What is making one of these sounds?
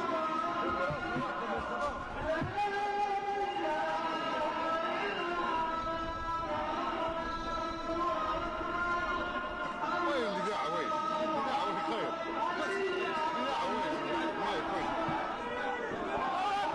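A large crowd sings together loudly outdoors.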